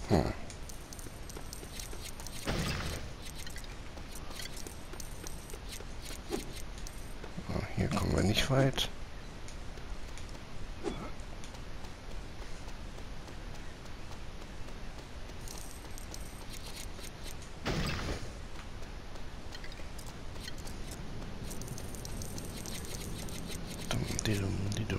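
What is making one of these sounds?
Small coins jingle and chime as they are picked up.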